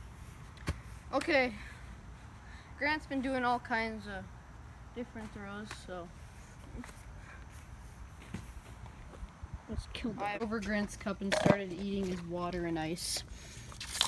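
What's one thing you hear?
A boy talks up close.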